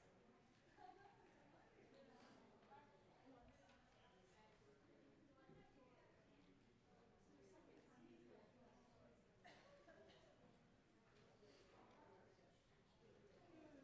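A man speaks calmly to a gathering in a large room.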